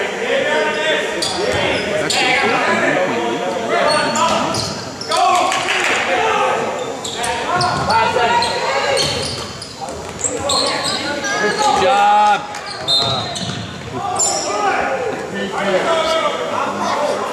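Spectators in a large echoing gym shout and cheer throughout.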